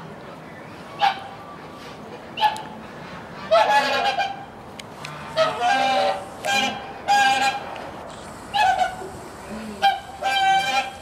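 A bear cub whimpers and moans in short bursts, close by.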